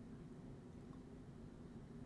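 A man sips a drink.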